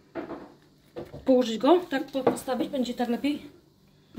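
A porcelain vase is set down on a wooden table with a soft knock.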